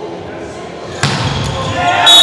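A volleyball is struck hard with a smack.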